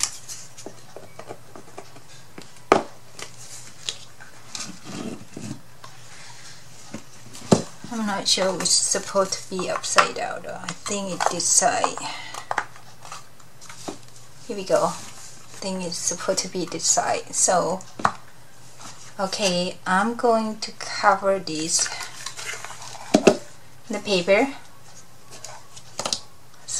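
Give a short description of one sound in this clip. Stiff card rustles and taps against a table.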